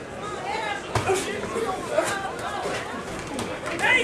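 Boxing gloves thud against each other and against a body.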